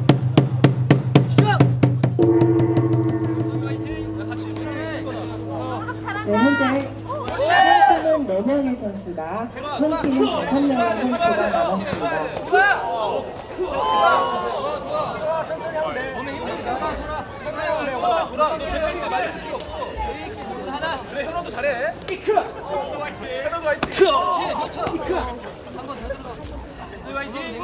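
A crowd of onlookers chatters and calls out outdoors.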